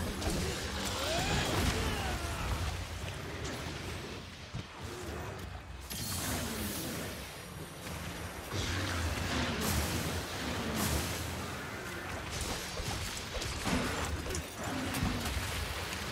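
Electric blasts crackle and boom.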